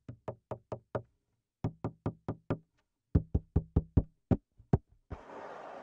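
A hand drum is tapped in quick, crisp beats.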